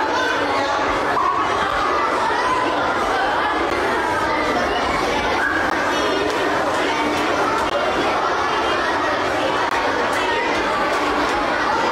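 A young girl talks excitedly close by.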